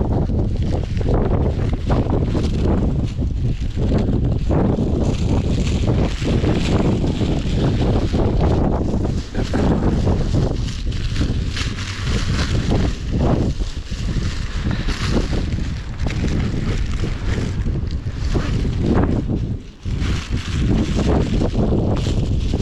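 A plastic bag flaps and rustles in the wind.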